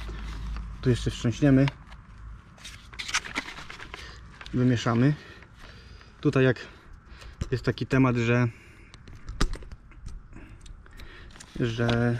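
A plastic sprayer bottle knocks and rattles as hands handle it.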